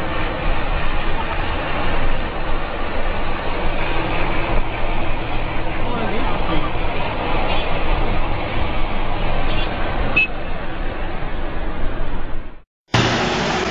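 A truck engine rumbles steadily on a road, with wind rushing past.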